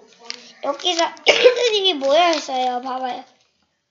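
Paper rustles as a young boy handles it.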